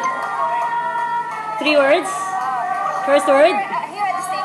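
A woman sings nearby.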